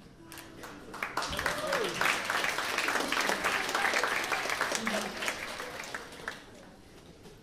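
An audience claps and cheers in a room.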